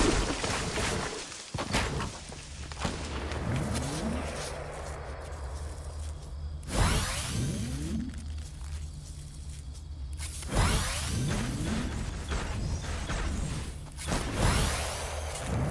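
Wooden and stone building pieces clatter into place in quick bursts.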